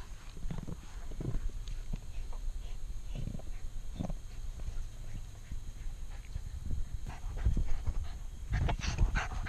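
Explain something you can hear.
A ball thumps and scrapes over grass.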